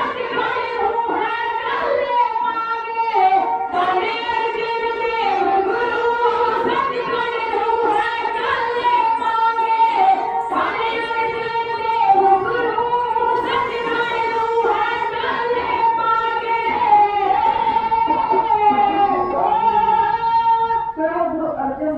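Women sing together through a loudspeaker.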